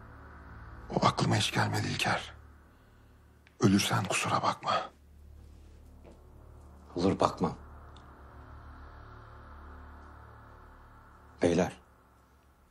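A middle-aged man speaks tensely nearby.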